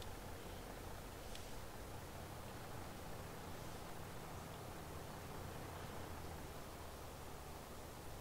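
A tractor engine rumbles steadily as it drives along.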